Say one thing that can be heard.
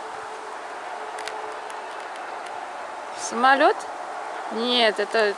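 Leaves rustle softly in a light breeze.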